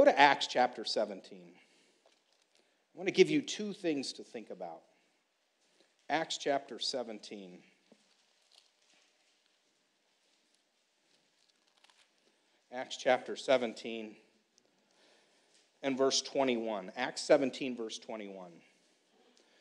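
A middle-aged man speaks calmly and slowly into a microphone, with pauses between phrases.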